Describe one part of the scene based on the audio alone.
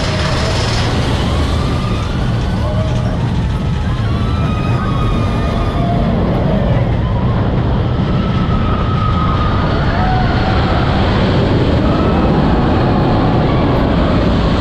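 A roller coaster train rumbles and clatters loudly along its track.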